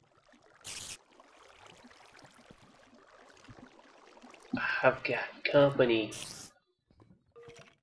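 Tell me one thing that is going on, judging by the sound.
Water trickles and splashes softly nearby.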